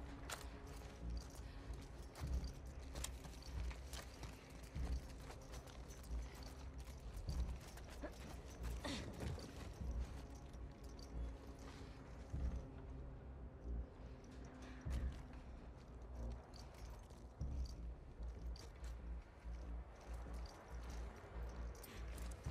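Footsteps shuffle softly across a hard floor.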